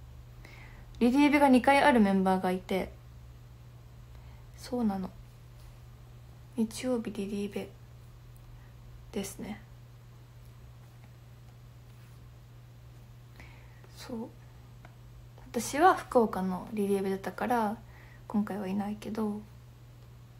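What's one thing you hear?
A young woman talks softly and casually close to a microphone, in short bursts with pauses.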